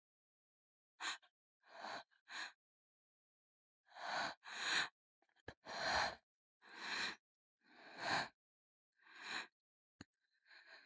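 A young woman gasps and breathes shakily.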